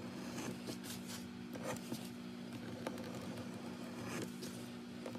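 Leather pieces rustle and slide as hands handle them.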